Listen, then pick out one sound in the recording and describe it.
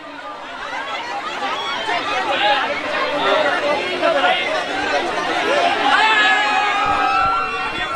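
A crowd of men and women cheer and shout loudly, close by.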